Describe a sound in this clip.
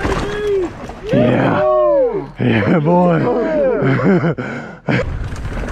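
A young man shouts and laughs with excitement close by.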